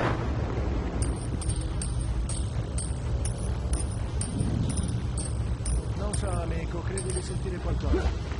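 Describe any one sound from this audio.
A metal chain clinks in short, regular bursts as someone climbs it.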